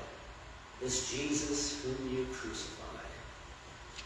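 An elderly man speaks briefly through a microphone in a large echoing hall.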